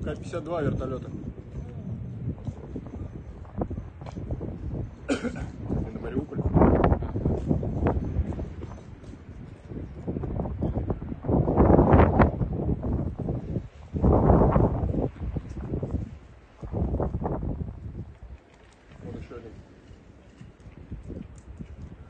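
Gusts of wind rumble and buffet outdoors.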